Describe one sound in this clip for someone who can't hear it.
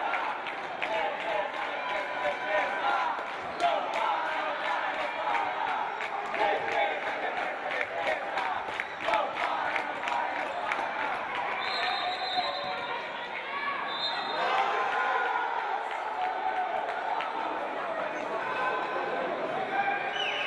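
A crowd of young men shouts and cheers nearby.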